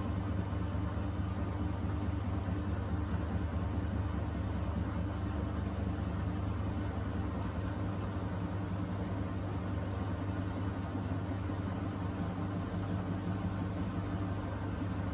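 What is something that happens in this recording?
Water sloshes inside a washing machine.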